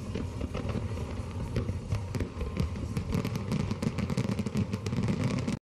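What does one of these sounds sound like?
Fireworks crackle and pop.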